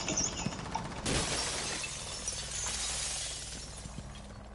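Glass and debris shatter and scatter.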